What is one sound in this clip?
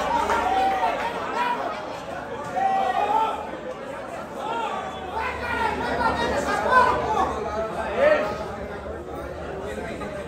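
A crowd of spectators murmurs and chatters nearby.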